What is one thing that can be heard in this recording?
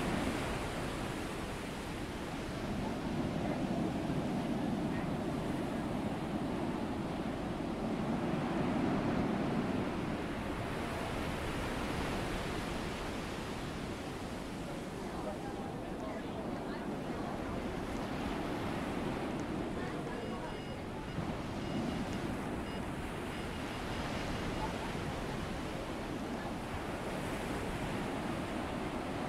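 Water rushes steadily past the hull of a moving ship.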